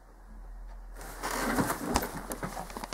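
A hand rubs and knocks against the microphone, very close.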